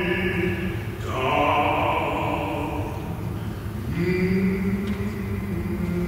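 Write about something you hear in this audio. A piano plays an accompaniment.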